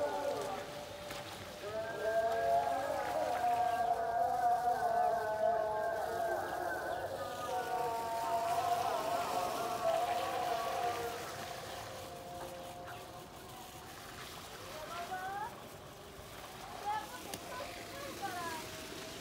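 Water sprays from a garden hose onto the ground.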